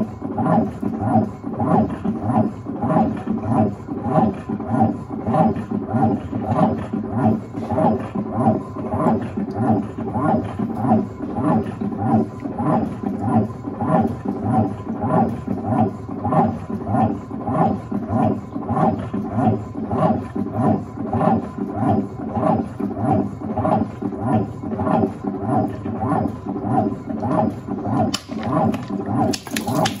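A washing machine agitator churns back and forth with a steady rhythmic hum.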